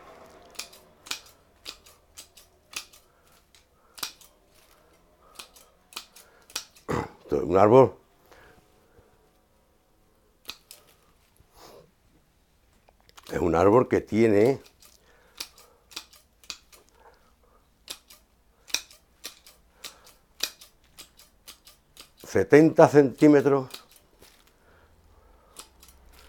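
Pruning shears snip through small twigs.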